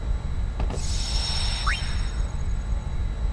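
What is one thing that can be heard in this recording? An electronic menu chime rings out and quickly fades.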